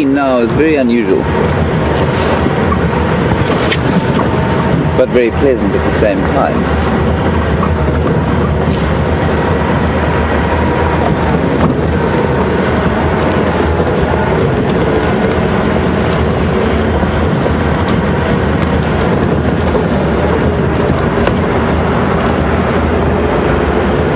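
Tyres crunch over a bumpy dirt road.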